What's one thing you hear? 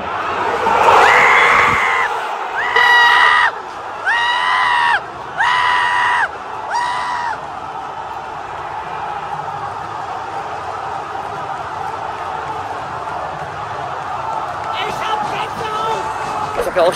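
A large crowd roars and cheers.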